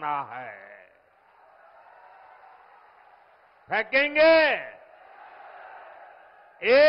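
A large crowd cheers.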